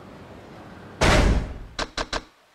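A game menu opens with a sharp whoosh.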